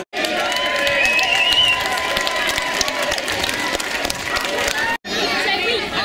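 A crowd of young men cheers and shouts close by.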